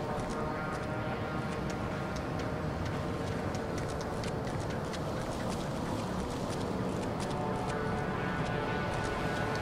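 Footsteps walk steadily on a hard surface.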